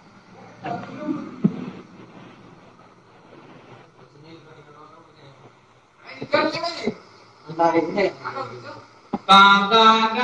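A man talks casually close to a phone microphone.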